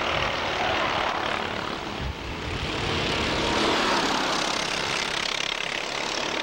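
Several kart engines buzz and whine loudly as the karts race past.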